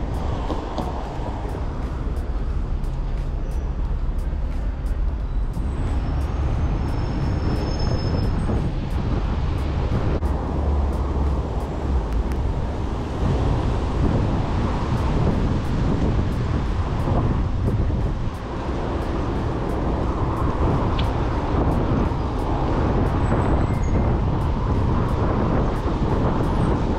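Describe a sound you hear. Wind rushes loudly past a moving bicycle, outdoors.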